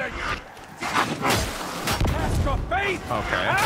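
Flames burst and roar in an explosion.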